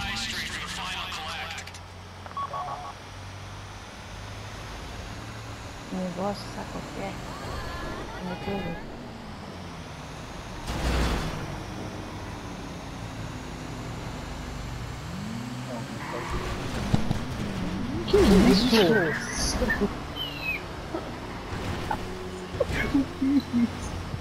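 A heavy truck engine rumbles steadily as it drives.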